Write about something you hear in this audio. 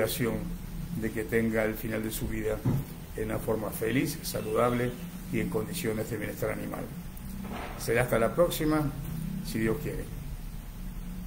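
An elderly man talks calmly close to a microphone.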